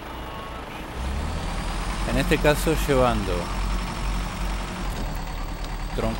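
A heavy truck engine revs up as the truck pulls away.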